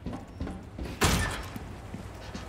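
A metal gate clangs shut.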